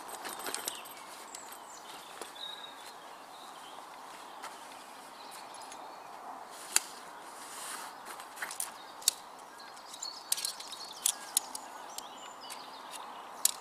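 Tent poles click and rattle as they are handled.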